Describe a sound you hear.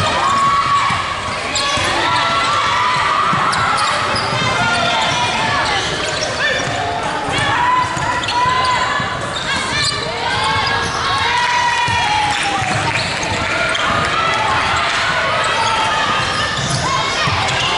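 Young women call out to each other during play.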